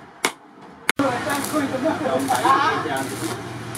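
A welding torch crackles and hisses.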